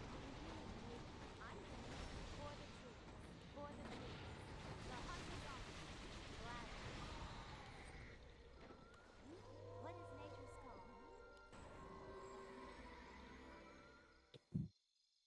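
Fiery magic blasts crackle and roar in a battle.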